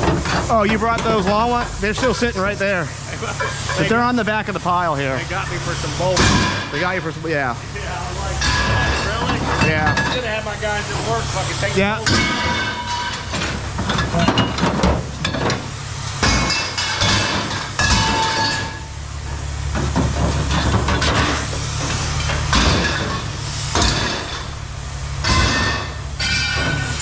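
Metal pieces clank and rattle as they are handled.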